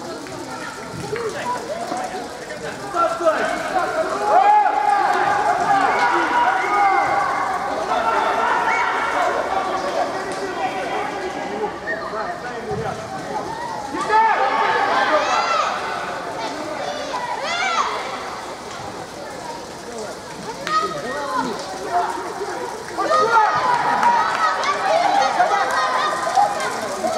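Young men shout and call out to each other across a large echoing hall.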